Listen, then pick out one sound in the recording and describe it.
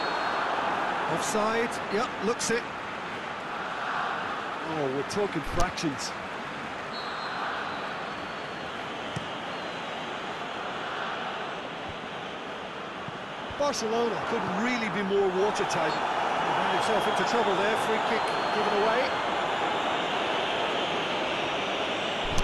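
A stadium crowd roars and murmurs steadily, swelling louder toward the end.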